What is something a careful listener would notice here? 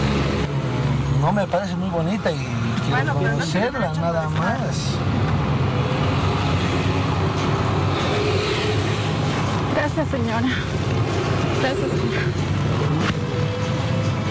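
A vehicle engine hums steadily from inside the vehicle.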